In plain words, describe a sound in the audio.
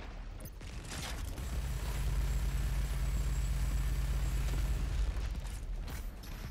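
Heavy gunfire rumbles and booms.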